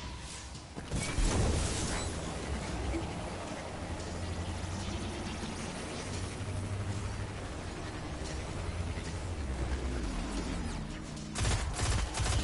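A hover vehicle's engine hums and roars steadily.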